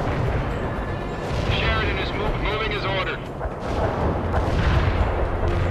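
Fires roar and crackle with a low rumble.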